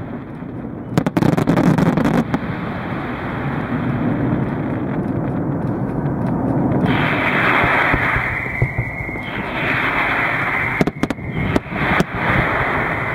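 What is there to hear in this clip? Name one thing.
Fireworks burst with sharp bangs.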